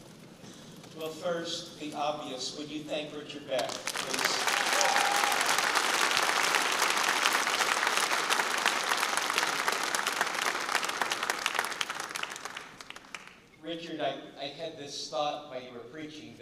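An older man speaks with animation through a microphone in a large hall.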